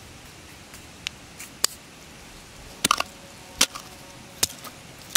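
A hoe chops into soft soil with dull thuds.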